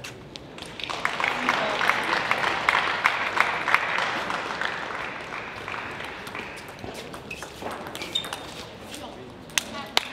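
A table tennis ball is struck back and forth with paddles and bounces on the table.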